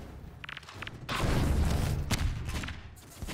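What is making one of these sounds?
A weapon fires a loud crackling energy blast.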